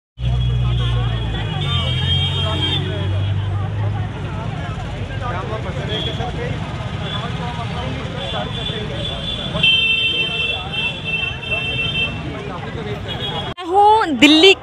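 A crowd of protesters chants and talks outdoors.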